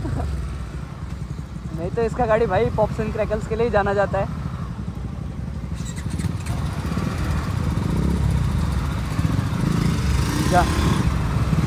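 Motorcycle engines idle with a low rumble close by.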